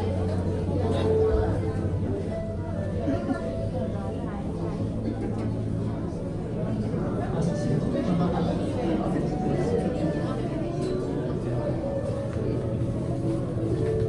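A crowd of people murmurs and chatters nearby in a large echoing hall.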